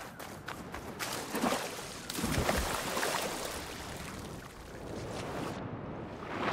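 Water splashes as a figure dives in.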